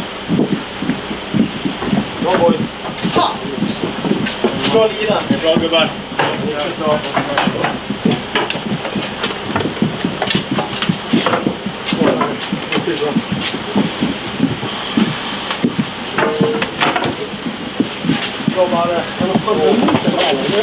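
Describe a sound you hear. Hockey sticks knock and clatter on the floor.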